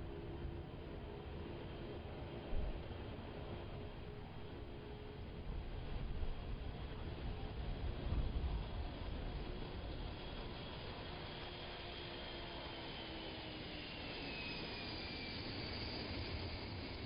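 A jet engine whines with a high pitch that slowly falls.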